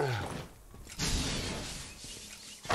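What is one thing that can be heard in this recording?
An electric blast crackles and buzzes.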